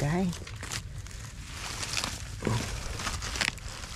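Dry palm fronds and leaves rustle and crackle as a hand pushes through them.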